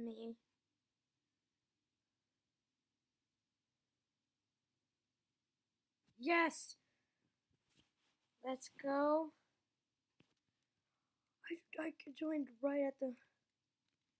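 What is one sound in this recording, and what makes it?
A boy speaks with animation close to a microphone, in short bursts.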